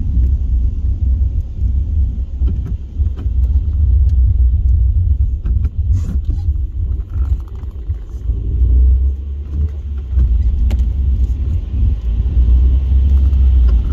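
Raindrops tap on the windscreen.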